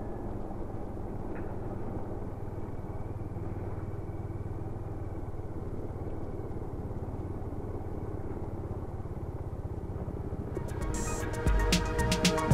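Motorcycle tyres splash through shallow water.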